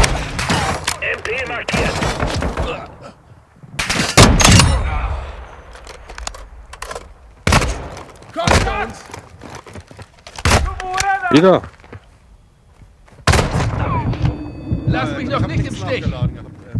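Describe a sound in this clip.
Rifle shots crack loudly in short bursts.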